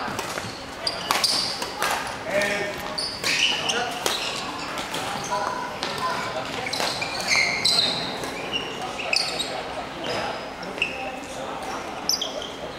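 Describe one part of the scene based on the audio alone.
Footsteps patter quickly across the court.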